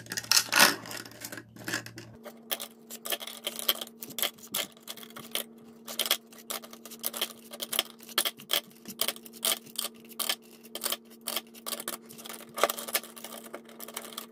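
Pens drop into a plastic holder with light taps.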